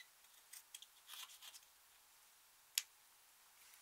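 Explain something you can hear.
A metal tool scrapes and crumbles powder from a plastic case.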